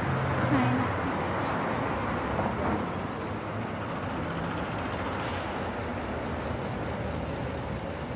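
Street traffic hums in the open air.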